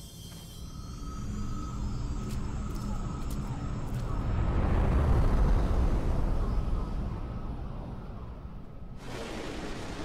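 A large hovering craft rumbles with a deep, swelling hum.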